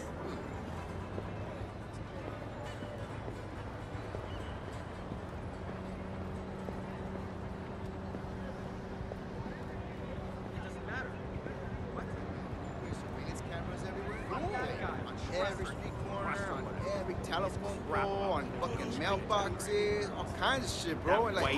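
Footsteps walk steadily on pavement.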